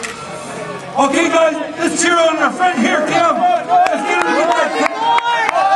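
A crowd of men cheers and shouts loudly outdoors.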